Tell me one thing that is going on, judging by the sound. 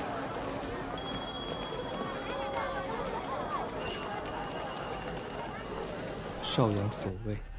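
Many people chatter in a busy street.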